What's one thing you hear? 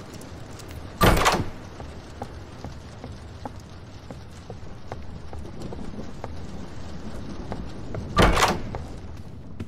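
A door is flung open with a loud, sharp bang.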